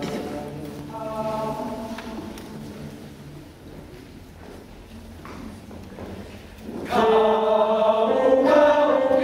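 A mixed choir sings together in a hall, swelling loudly near the end.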